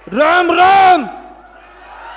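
A man shouts loudly through a microphone.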